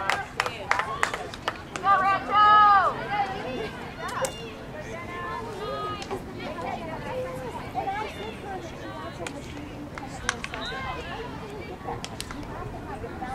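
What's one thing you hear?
Hockey sticks clack against a ball now and then.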